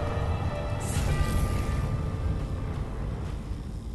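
A bright magical chime rings out and fades.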